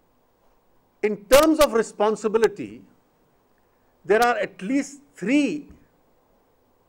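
A middle-aged man speaks into microphones in short bursts, with pauses between.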